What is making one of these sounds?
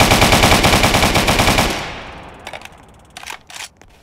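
Rapid gunshots fire from a rifle.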